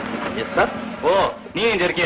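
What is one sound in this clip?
A man speaks loudly and sharply.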